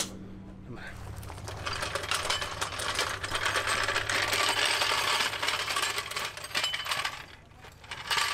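A floor jack rolls and crunches over gravel.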